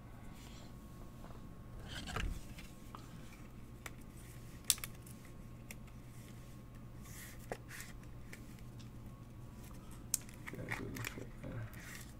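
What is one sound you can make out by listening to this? Cards rustle and click softly as they are handled.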